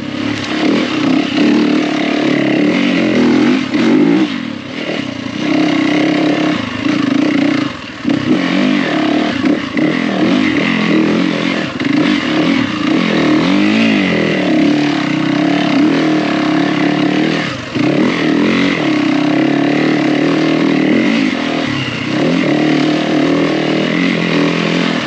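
Tyres crunch over loose gravel and dirt.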